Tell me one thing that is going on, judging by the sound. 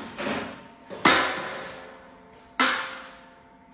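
Metal knocks and clanks against a steel beam.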